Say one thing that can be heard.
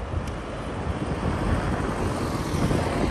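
A taxi approaches with a low engine hum.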